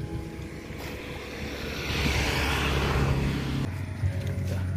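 A fishing trap splashes into water.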